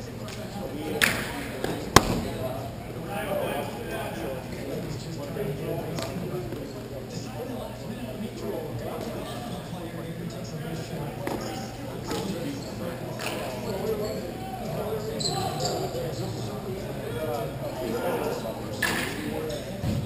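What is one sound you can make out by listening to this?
Hockey sticks clack against the ball and the floor, echoing through a large hall.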